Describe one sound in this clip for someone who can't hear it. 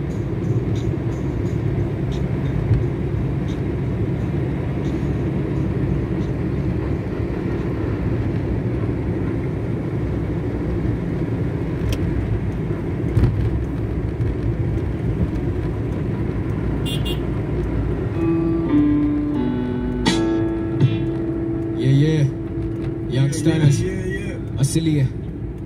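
A car engine hums steadily with tyres rumbling on the road, heard from inside the car.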